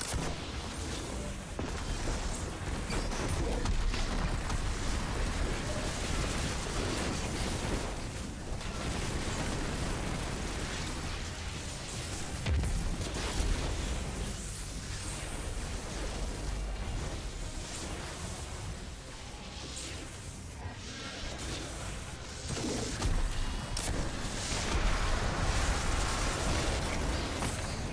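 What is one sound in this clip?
Gunfire from a game rattles and booms.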